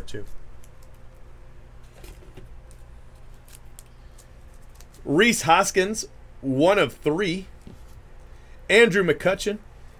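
Trading cards rustle and click softly as hands shuffle through a stack.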